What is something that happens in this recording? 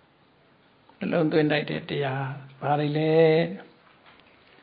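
An elderly man chants a prayer into a microphone in a steady, sung voice.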